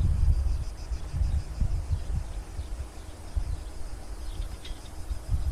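Wind blusters outdoors in gusts.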